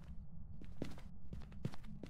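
Footsteps thud on a hard floor nearby.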